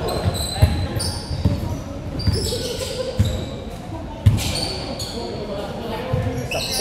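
Sneakers squeak sharply on a polished floor.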